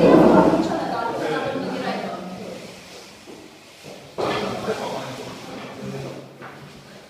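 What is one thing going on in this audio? A young man talks back nearby.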